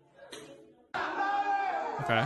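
Young men shout and laugh.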